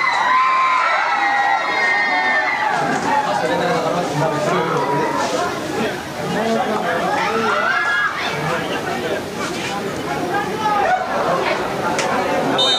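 A large outdoor crowd of spectators cheers and shouts.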